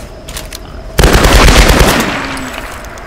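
A gunshot rings out loudly.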